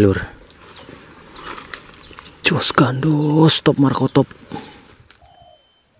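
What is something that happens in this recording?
Leaves rustle as a hand brushes through plants.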